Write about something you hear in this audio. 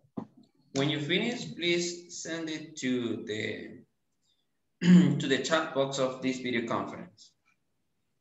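A man speaks over an online call with animation.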